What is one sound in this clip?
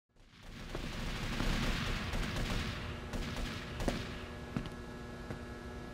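A man's footsteps tap on a hard floor.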